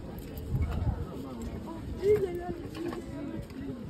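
Small metal keys jingle on a ring close by.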